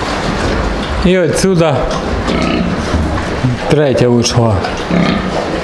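A pig grunts and squeals nearby.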